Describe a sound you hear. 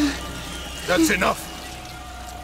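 A man shouts out briefly.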